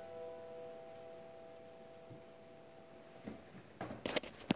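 A piano chord rings out and slowly fades.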